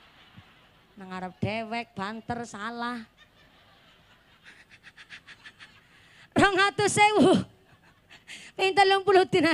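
A young woman sings passionately into a microphone through loudspeakers.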